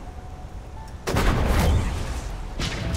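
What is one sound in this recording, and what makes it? Electricity crackles and sizzles sharply.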